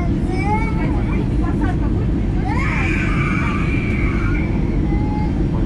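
A jet engine roars steadily from close by.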